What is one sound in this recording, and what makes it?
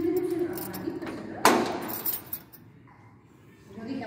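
A metal lock clicks as a key turns in it.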